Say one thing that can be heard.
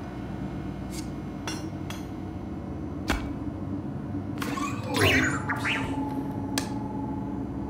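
A hammer knocks sharply against metal.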